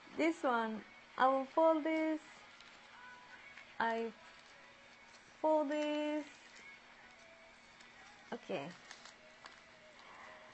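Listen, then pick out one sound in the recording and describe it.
Paper crinkles softly as it is folded.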